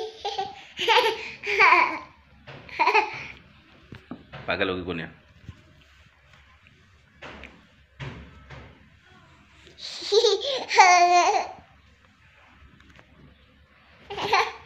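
A young child laughs and squeals playfully close by.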